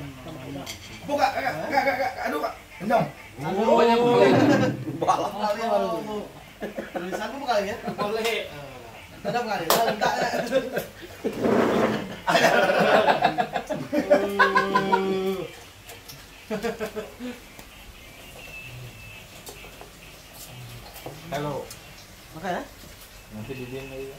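Several men talk and laugh loudly nearby.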